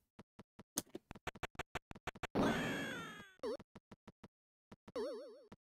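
Quick electronic ticks of a retro video game character's footsteps patter steadily.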